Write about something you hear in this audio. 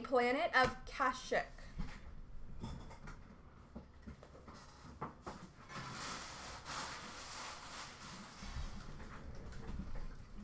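Foil card packs rustle as a hand handles them.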